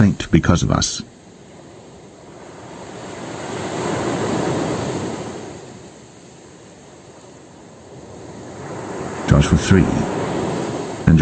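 Waves break and wash up on a pebble beach.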